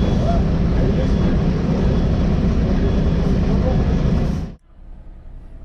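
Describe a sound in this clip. A vehicle rumbles loudly.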